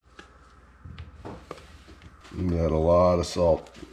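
Salt pours from a canister into a pot of water.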